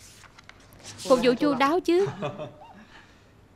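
A man laughs brightly close by.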